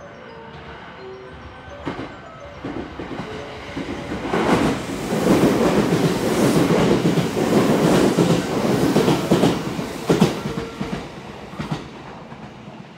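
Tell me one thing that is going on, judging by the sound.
A train approaches and rushes past at speed with a loud roar.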